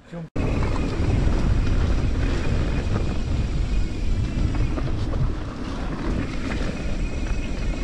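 Tyres crunch and rattle on a rough dirt track.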